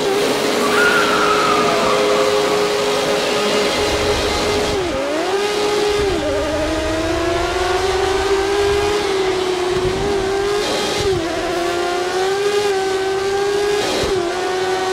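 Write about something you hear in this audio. A racing car engine whines loudly at high revs, dropping briefly with each gear shift and climbing again.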